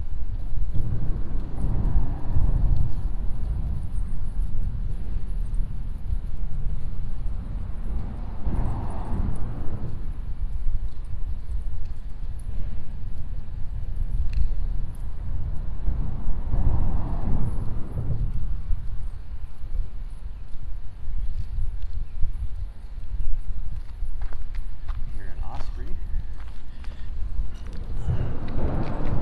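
Water laps against a concrete wall.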